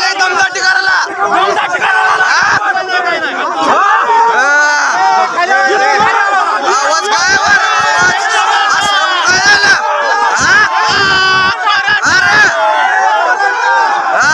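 A crowd of men shout over one another, close by and agitated.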